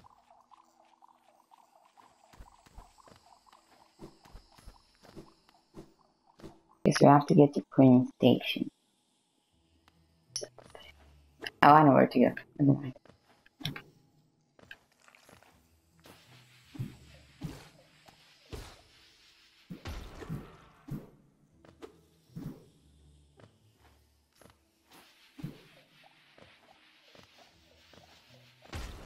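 Quick light footsteps patter and tap.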